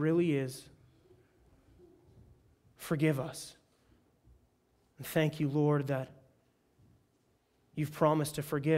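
A young man speaks calmly into a microphone, in short phrases with pauses.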